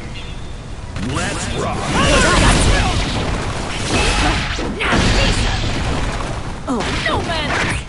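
Heavy blows and slashes thud and crash in quick succession.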